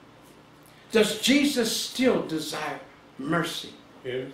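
A middle-aged man speaks calmly and clearly nearby.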